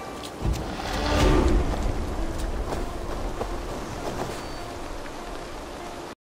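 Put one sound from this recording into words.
Footsteps run across soft ground.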